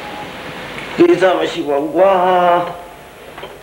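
An elderly man speaks loudly from close by.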